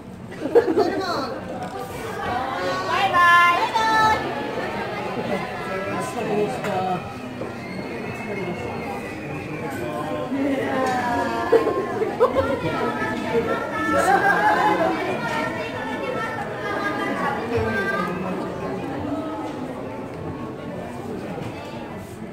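A crowd of people chatter and call out nearby in a busy, echoing indoor space.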